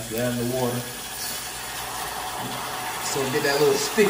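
Water pours into a simmering pan.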